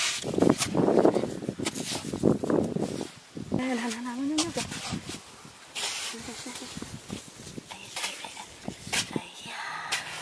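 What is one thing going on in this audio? Fingers dig and crumble loose soil.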